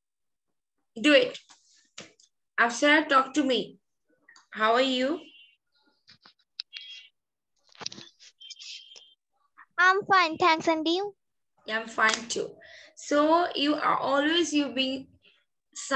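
A woman speaks clearly over an online call, in short bursts with pauses.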